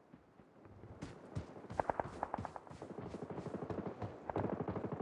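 Quick footsteps thud on wooden boards and grass.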